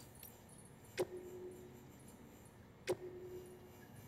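Short electronic menu beeps chime twice.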